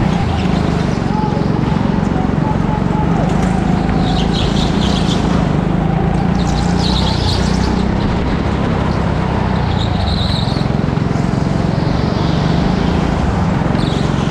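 A go-kart engine drones loudly and steadily up close.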